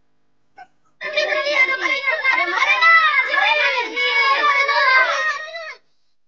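Young boys cheer and shout loudly close by.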